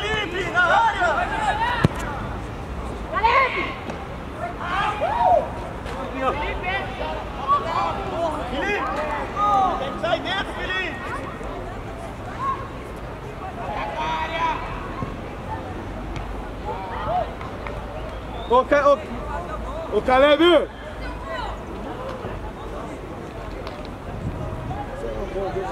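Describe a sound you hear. Boys shout to each other across an open outdoor field.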